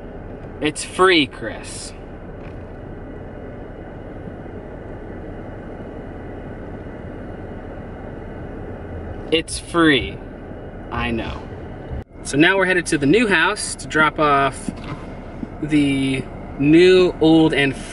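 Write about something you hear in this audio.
A car engine hums steadily in the background.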